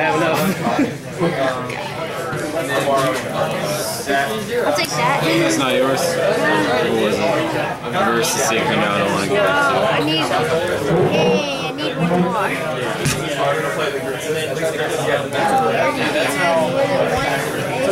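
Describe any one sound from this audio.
Playing cards slide, flick and pat against each other on a table.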